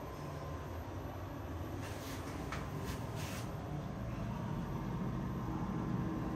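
An elevator hums and rumbles steadily as it moves.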